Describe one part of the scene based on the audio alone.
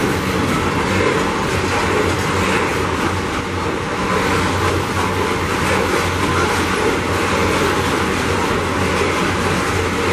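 Heavy freight wagons rumble and clatter steadily along a railway track close by.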